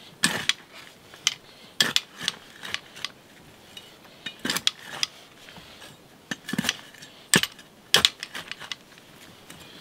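A small hoe scrapes and digs into loose dirt.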